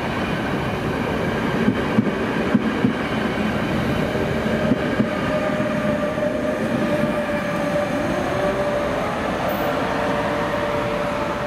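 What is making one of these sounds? A passenger train rumbles past close by on the rails.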